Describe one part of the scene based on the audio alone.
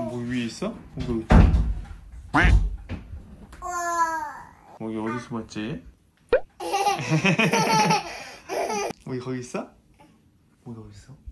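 A toddler girl babbles and squeals close by.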